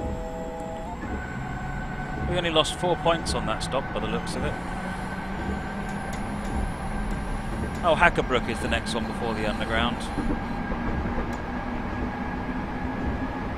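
An electric commuter train's traction motors whine as it speeds up.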